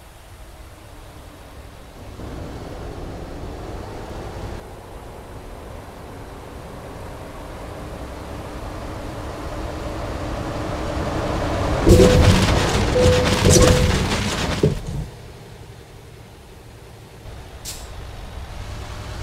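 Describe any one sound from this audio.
A truck engine rumbles and rises steadily.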